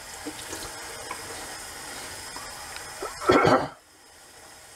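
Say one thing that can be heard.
Water splashes as a man rinses his face with his hands.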